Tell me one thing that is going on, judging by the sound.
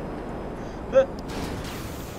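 A jet crashes with a loud impact.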